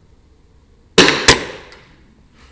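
An air rifle fires with a sharp crack.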